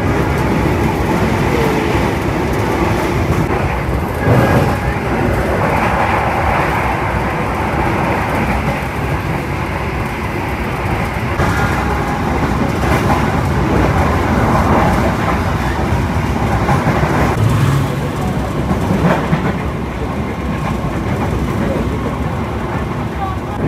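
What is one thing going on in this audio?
Another train rushes past close by.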